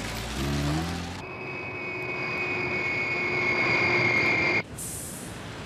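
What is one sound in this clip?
A jet airliner roars overhead as it comes in to land.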